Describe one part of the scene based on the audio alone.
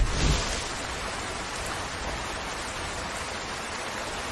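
Rain falls steadily and hisses.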